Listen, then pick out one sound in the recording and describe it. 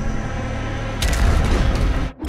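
A heavy gun fires with a loud, booming blast.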